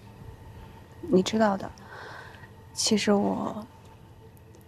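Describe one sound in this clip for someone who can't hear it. A young woman replies softly nearby.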